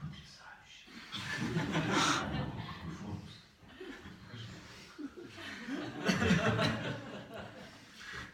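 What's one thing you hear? A group of people laughs together.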